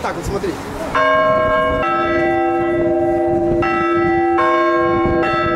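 Large church bells ring out loudly in overlapping, clanging peals.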